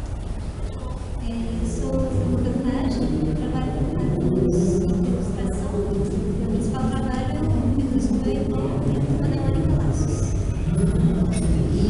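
A young woman speaks calmly into a microphone, heard over a loudspeaker.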